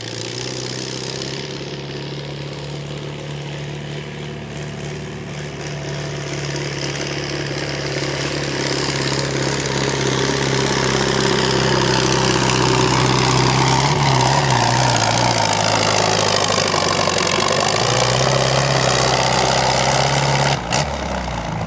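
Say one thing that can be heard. A tractor engine roars loudly and strains under heavy load.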